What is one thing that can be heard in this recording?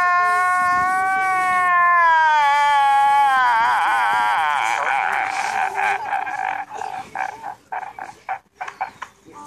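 A man wails and sobs loudly.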